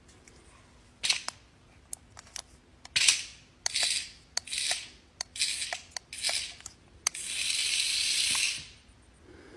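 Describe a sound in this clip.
A toy snake rattles across a hard floor.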